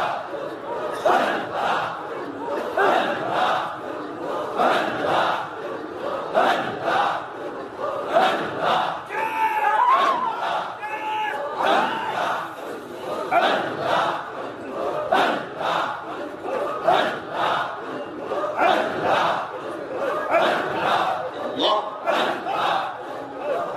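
A man preaches passionately into a microphone, heard through a loudspeaker outdoors.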